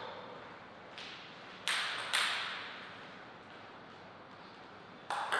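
A small plastic ball clicks sharply on a table and paddle in a large echoing hall.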